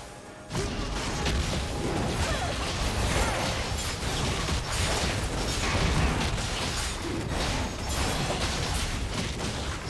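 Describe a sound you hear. Magic blasts whoosh and crackle in a fast, busy fight.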